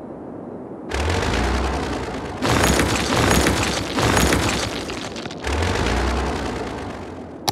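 A building collapses with a rumbling crash.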